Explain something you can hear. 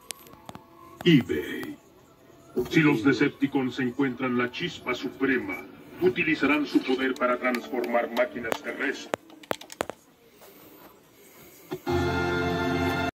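A film soundtrack plays loudly through television speakers.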